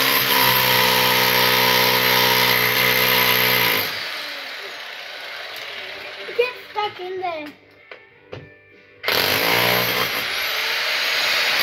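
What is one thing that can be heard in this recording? A jackhammer pounds loudly into a concrete floor, stopping and then starting again.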